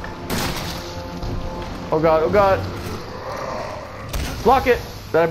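A shotgun fires with a loud boom.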